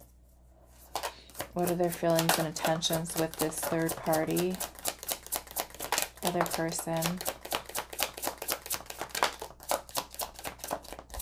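A deck of cards is shuffled, with quick riffling flicks.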